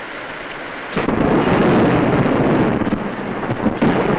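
A group of soldiers tramps heavily past in the rain.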